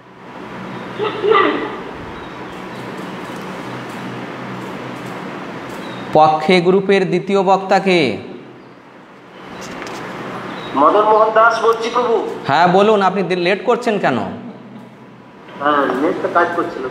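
A man speaks calmly into a close microphone, in pauses.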